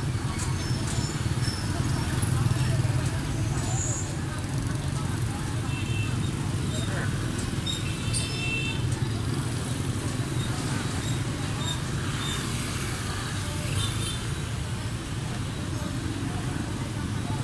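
Motorbike engines hum and buzz steadily as they pass close by.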